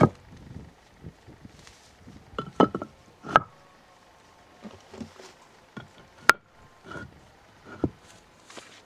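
Stone blocks knock and scrape against each other.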